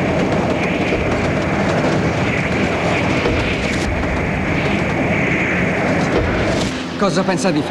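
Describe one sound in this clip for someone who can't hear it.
A train rushes through a tunnel with a loud roar.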